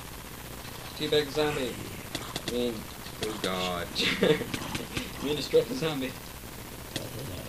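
A zombie groans in a low, rasping voice.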